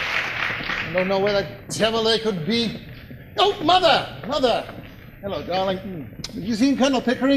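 An adult man sings on a stage in a large hall.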